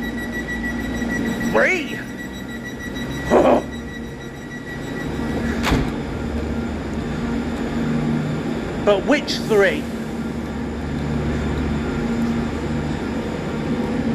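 A stationary train hums low and steadily in an echoing underground station.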